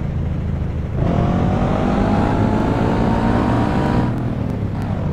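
A motorcycle engine revs up, rising in pitch.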